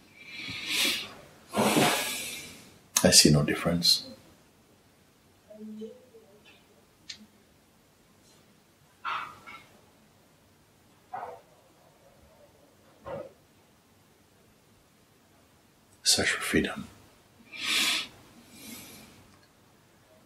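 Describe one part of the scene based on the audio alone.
An elderly man speaks calmly and slowly, close by.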